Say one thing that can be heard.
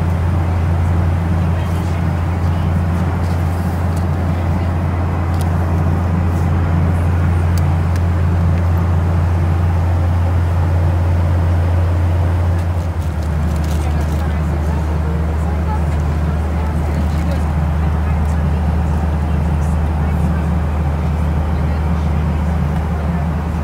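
A jet engine drones steadily and loudly from inside the cabin.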